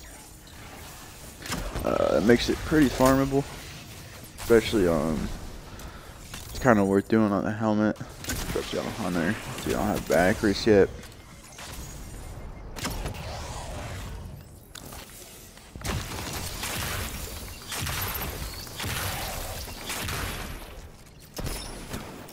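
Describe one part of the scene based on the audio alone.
Gunshots fire rapidly from a video game weapon.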